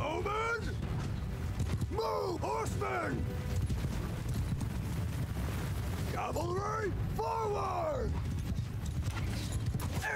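A large army tramps across grass with a steady rumble of footsteps.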